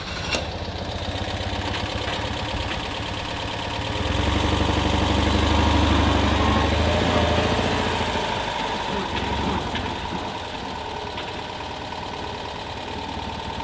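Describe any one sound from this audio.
A small car engine idles and chugs steadily.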